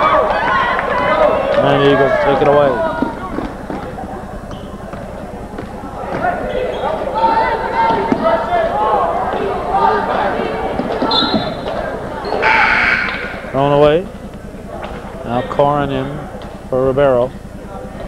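A crowd of people talk and shout in an echoing gym.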